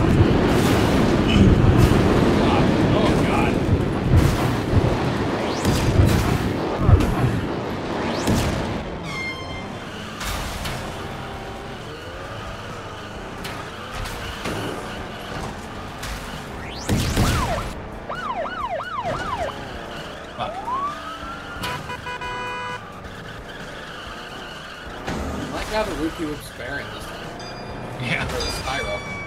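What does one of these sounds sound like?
Small racing car engines buzz and whine as they speed along.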